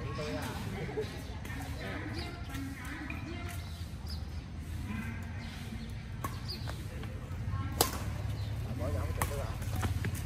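Badminton rackets hit a shuttlecock with sharp pops.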